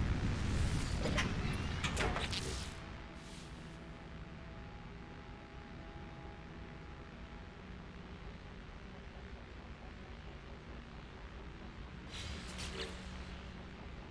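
Game menu chimes and beeps sound in short bursts.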